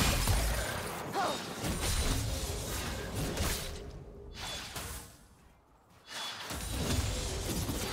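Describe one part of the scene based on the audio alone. Video game combat effects clash and crackle.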